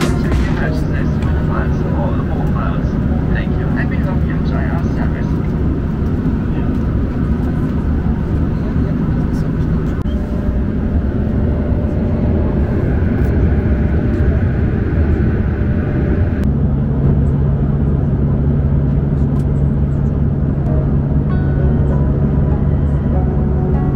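A jet engine roars steadily in an aircraft cabin.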